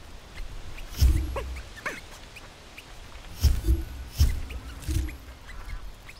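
Soft thuds sound as a small figure jumps and lands.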